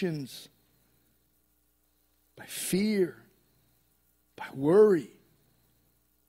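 A man speaks with animation through a microphone, in short phrases.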